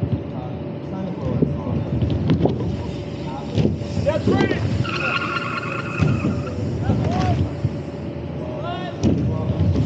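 Bicycle tyres roll and rumble up a ramp.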